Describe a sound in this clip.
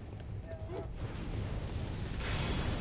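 Torch flames roar.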